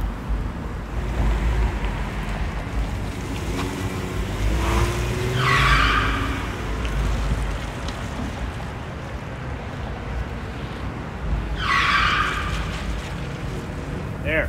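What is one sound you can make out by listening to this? A minivan engine runs as the van drives slowly away.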